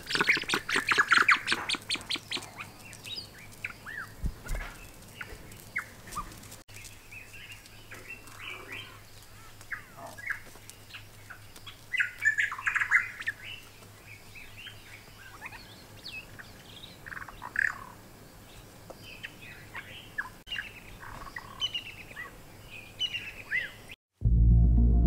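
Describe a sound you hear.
Guineafowl chirp and squeak on and off.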